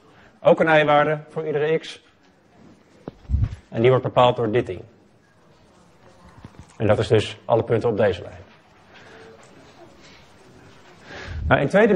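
A man lectures calmly through a microphone, in short bursts with pauses.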